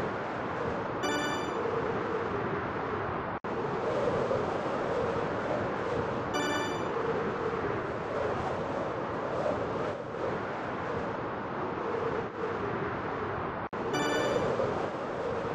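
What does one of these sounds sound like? A bright chime rings out briefly.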